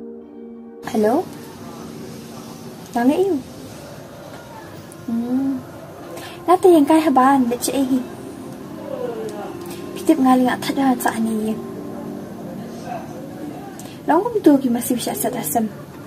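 A young woman talks on a phone close by, with animation.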